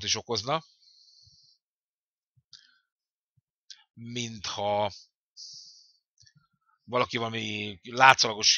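An elderly man speaks with animation into a close microphone, pausing between phrases.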